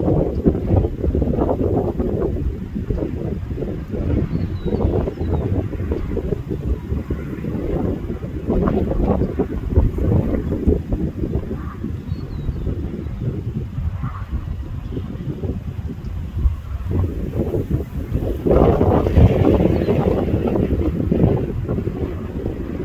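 A freight train rumbles past at a distance.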